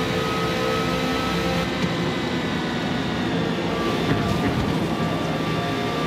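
A racing car engine screams at high revs and drops in pitch as the car slows for a corner.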